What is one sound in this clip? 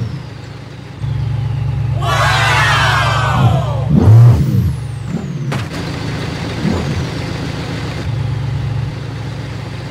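A sports car engine rumbles.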